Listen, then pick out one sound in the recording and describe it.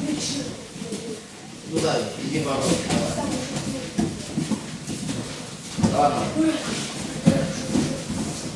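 Bodies thud onto a padded mat.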